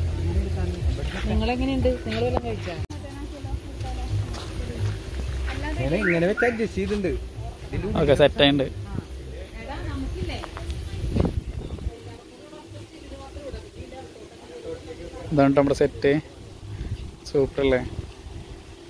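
Men talk nearby in short bursts.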